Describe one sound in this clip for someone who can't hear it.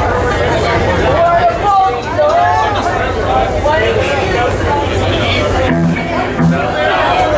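A live band plays loudly.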